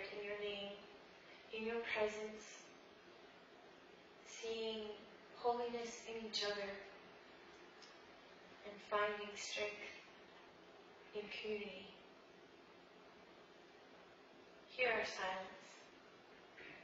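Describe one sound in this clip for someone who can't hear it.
A woman speaks calmly at a distance in an echoing hall, with pauses between phrases.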